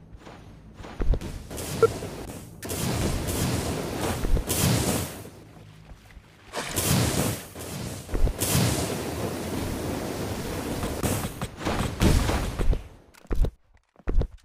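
Footsteps thud across sand.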